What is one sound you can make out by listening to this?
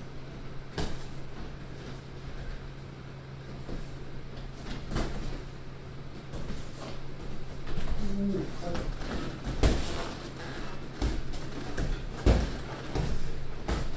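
Boxing gloves thump against punch mitts.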